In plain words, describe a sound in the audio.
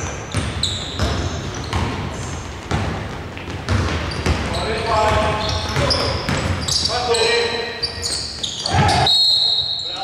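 A basketball bounces on a hard floor, echoing in a large empty hall.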